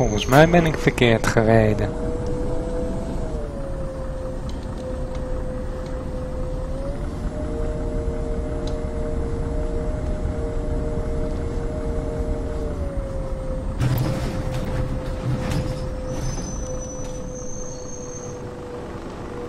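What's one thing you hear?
A bus engine hums steadily, its pitch rising and falling with speed.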